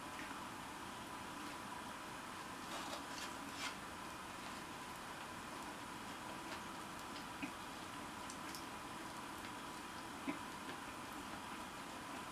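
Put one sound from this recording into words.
A man chews and eats food close by.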